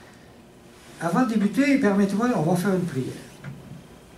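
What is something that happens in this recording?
An older man speaks calmly through a headset microphone.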